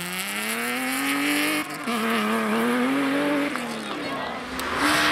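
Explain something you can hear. A rally car engine revs hard, rising in pitch and dropping at each gear change.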